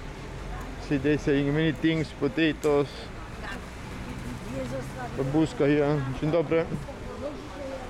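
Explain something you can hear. An elderly woman talks nearby.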